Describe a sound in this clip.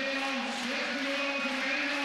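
A middle-aged woman shouts loudly nearby.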